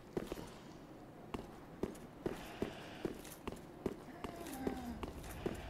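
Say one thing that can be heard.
Armoured footsteps clank on stone at a quick, even pace.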